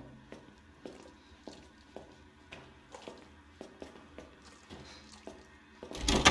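Footsteps tread slowly and evenly on a hard tiled floor.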